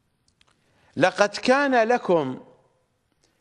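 A middle-aged man speaks calmly and clearly into a microphone.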